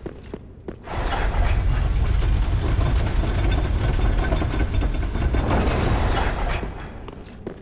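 A heavy lift rumbles as it moves on chains.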